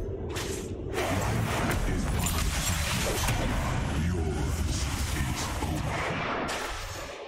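Magic spell effects rumble and crackle in a video game.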